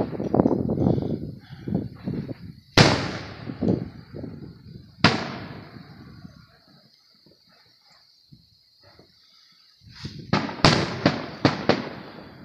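Fireworks burst with loud booms and crackles.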